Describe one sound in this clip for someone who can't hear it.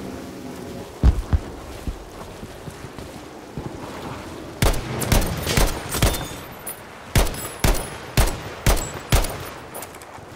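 Explosions boom and crack nearby.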